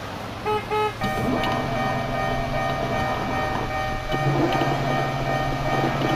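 Level crossing barriers lower with a steady mechanical hum.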